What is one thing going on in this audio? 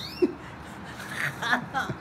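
An elderly woman laughs.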